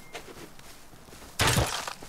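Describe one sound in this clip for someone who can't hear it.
A knife swishes and chops through leafy brush.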